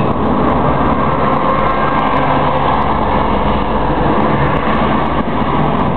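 A bus passes close alongside.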